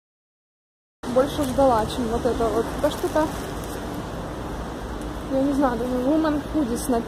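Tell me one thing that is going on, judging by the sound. A young woman speaks close up, softly.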